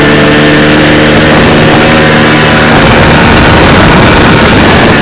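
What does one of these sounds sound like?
A snowmobile engine roars loudly close by.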